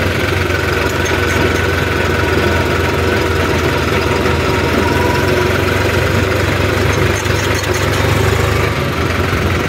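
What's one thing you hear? A tractor's diesel engine chugs steadily up close.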